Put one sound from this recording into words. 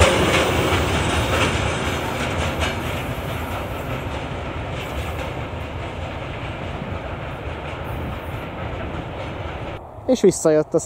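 A freight train rumbles away along the tracks and slowly fades.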